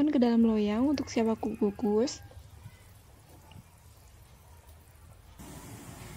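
Thick batter plops softly as it pours into a bowl.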